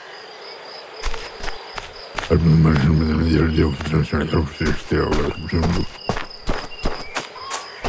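Footsteps thud on a dirt path.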